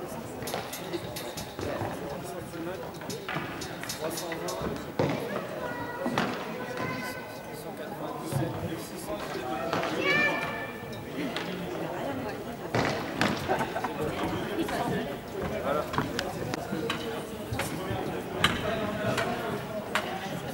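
Hockey sticks knock and tap together.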